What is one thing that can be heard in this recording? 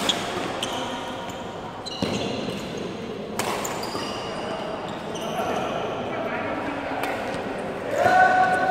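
Badminton rackets smack a shuttlecock back and forth in a large echoing hall.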